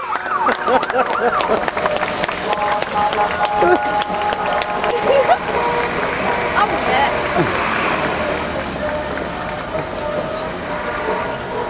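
A crowd cheers, shouts and whistles in the distance.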